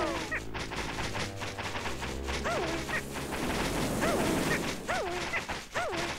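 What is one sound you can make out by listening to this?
Loose dirt rustles and sprays as something is dug out.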